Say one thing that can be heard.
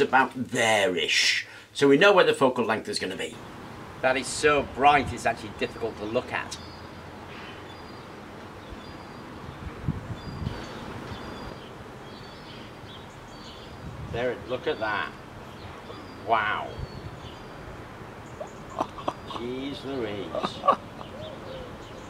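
An older man talks with animation close by.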